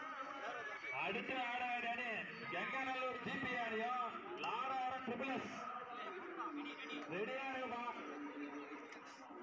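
A young man chants rapidly over and over.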